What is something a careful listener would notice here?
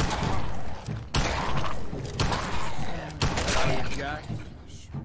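Loud gunshots ring out in quick bursts.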